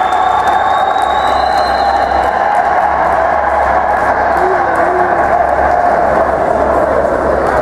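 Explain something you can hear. Swimmers splash and churn the water in an echoing indoor pool.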